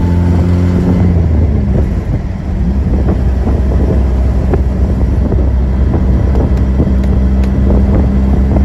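An old car engine rumbles steadily while driving.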